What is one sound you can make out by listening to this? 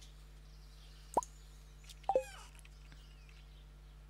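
A soft game chime sounds as a menu closes.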